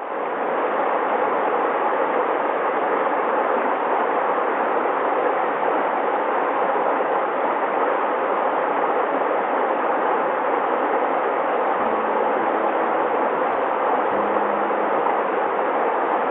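A shallow stream burbles and splashes steadily over rocks.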